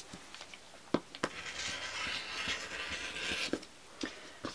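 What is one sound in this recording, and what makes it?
A rotary cutter rolls through fabric.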